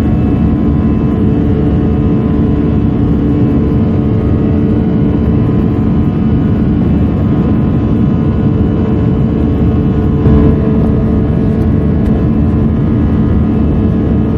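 The turbofan engines of an Airbus A320 drone, heard from inside the cabin during the climb.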